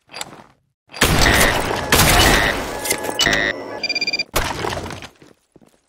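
A rifle fires loud, booming shots.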